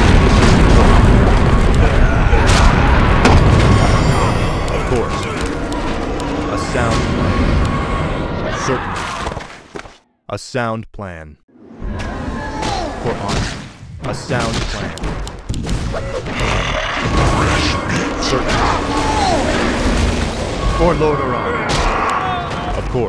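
Magic spells blast and crackle in a noisy fight.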